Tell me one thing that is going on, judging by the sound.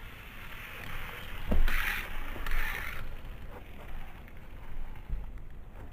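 A small toy car rolls along a plastic track.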